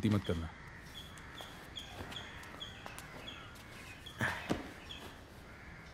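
Footsteps tread on a floor.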